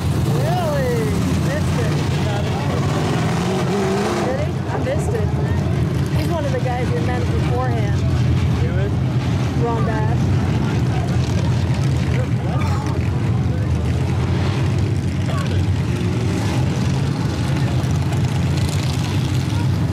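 Race car engines roar loudly nearby, rising and falling.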